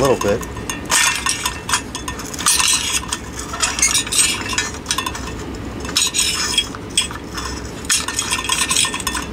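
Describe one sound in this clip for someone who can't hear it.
A screwdriver squeaks and scrapes as it turns a small screw in metal.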